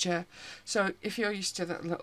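A small metal tin rattles as hands pick it up.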